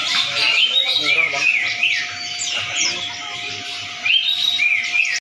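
Wading birds call with shrill, rapid chirps close by.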